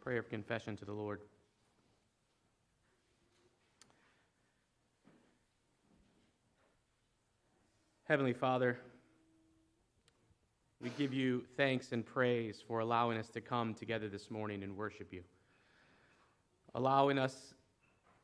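A man speaks earnestly into a microphone, pausing between phrases, in a room with a slight echo.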